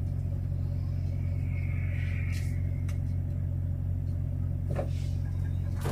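A box truck drives past on the road.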